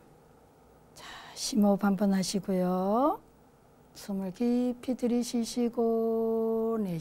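An elderly man speaks calmly and slowly through a microphone.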